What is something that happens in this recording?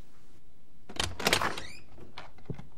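A wooden door creaks and clatters open.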